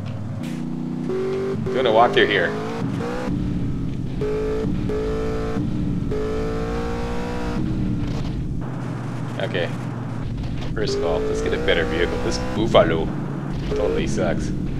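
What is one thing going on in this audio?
A car engine hums as a car drives over rough ground.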